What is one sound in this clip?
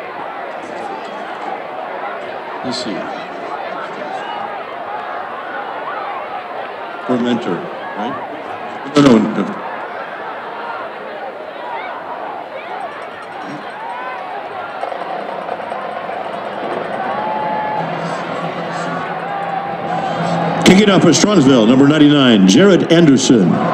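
A crowd of players and spectators chatters and shouts outdoors in a large stadium.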